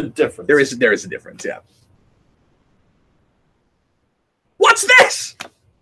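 A man talks cheerfully through an online call, in short bursts with a pause between.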